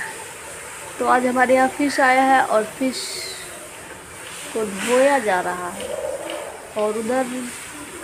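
A young woman speaks with animation close to the microphone.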